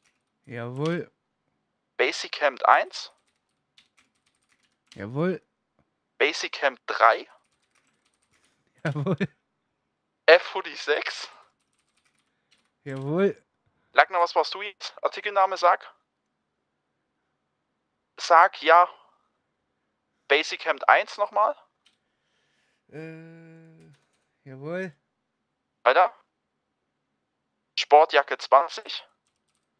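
A man talks on a phone call, speaking calmly in short bursts.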